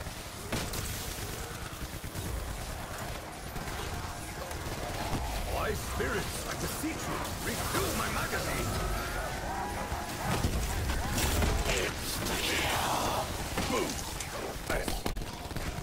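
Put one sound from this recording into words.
Electric bolts crackle and buzz.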